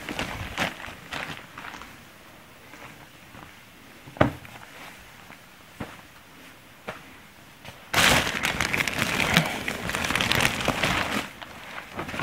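Plastic bags rustle and crinkle as they are handled.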